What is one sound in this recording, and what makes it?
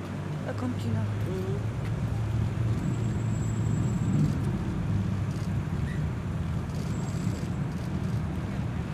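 A crowd murmurs along the street.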